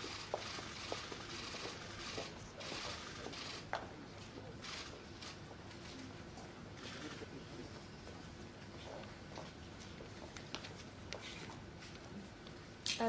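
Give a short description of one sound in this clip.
Footsteps shuffle and tap on a hard floor.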